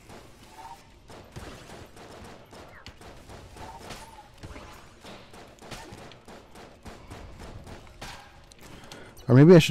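Small video game guns fire in rapid bursts.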